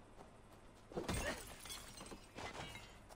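Weapons clash and thud in a brief fight.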